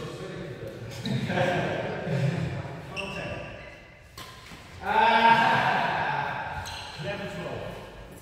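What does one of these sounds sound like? Young men talk casually nearby in an echoing hall.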